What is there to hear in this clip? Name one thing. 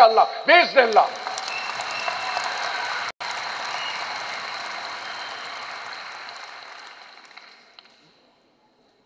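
A large crowd cheers and claps, then fades.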